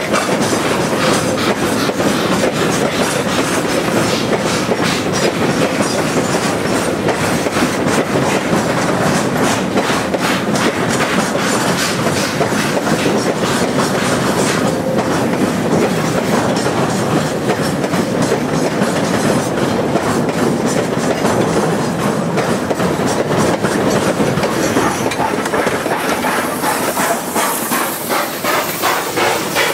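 A steam locomotive puffs steadily.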